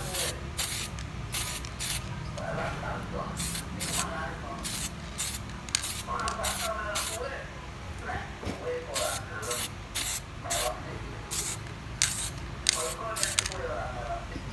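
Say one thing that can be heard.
A spray can hisses in short, repeated bursts.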